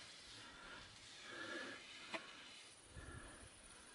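A metal straightedge scrapes across wet concrete.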